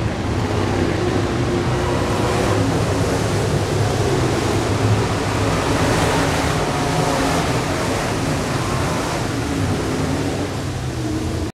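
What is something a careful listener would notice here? Race car engines roar loudly as the cars speed around a track.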